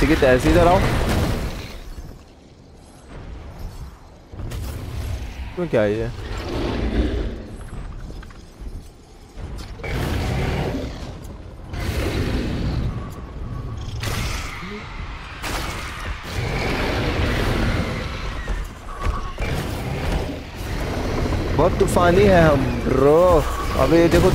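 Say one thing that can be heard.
A dragon lets out shrill, warbling screeches.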